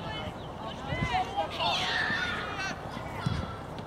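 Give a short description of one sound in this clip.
A soccer ball is kicked with a dull thump.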